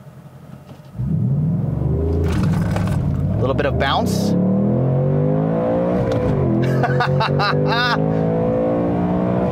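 A car engine roars and revs up steadily.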